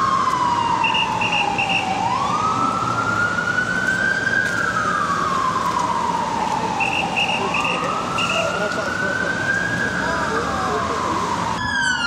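A siren wails loudly, rising and falling slowly.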